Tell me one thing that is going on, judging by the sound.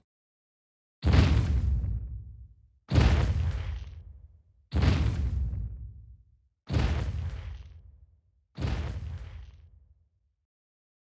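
Heavy footsteps thud at a slow, even pace and echo away.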